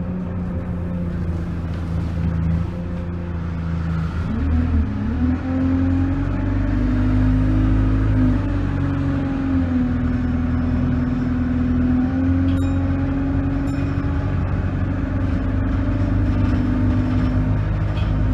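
A bus engine hums and whines as it picks up speed.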